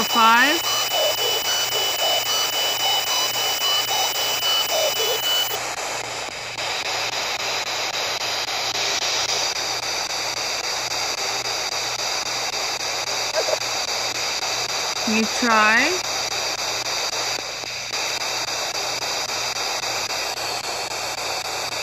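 A small radio scanner sweeps through stations with a steady choppy hiss and static.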